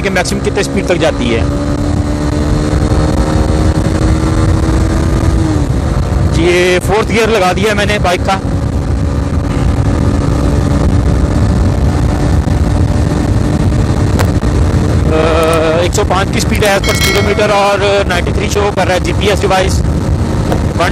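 A motorcycle engine roars as the bike speeds up.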